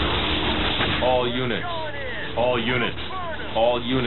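Explosions boom and crackle in a battle.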